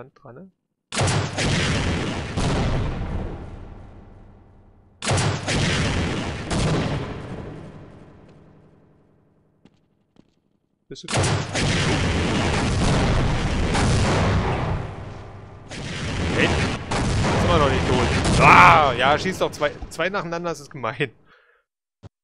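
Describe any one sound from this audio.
A rocket launcher fires with loud booming blasts that roll away slowly.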